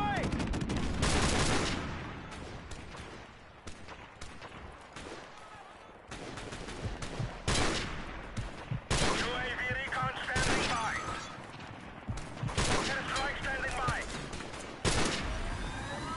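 Sniper rifle shots crack loudly, one at a time, with a rumbling echo.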